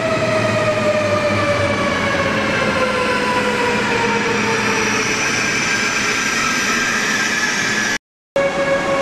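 A train hums with a falling whine as it moves along the platform, echoing under a large roof.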